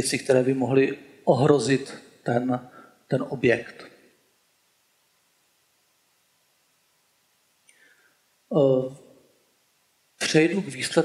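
A man speaks calmly into a microphone, in pauses.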